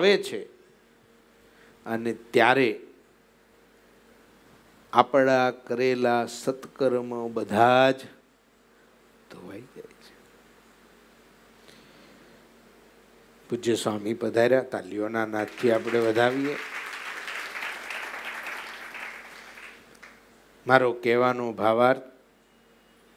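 A middle-aged man speaks with animation into a close microphone, pausing between phrases.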